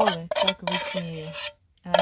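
A ladle scrapes against a pot.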